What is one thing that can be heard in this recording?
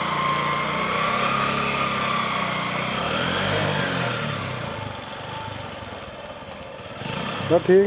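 A motorcycle engine runs with a steady hum.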